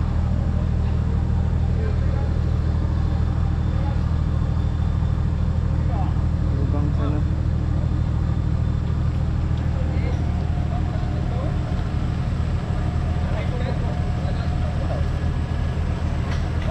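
A vehicle engine runs with a steady low rumble, straining through mud.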